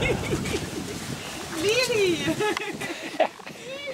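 A small child laughs.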